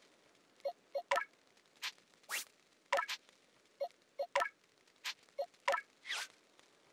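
Short electronic menu blips and chimes sound repeatedly.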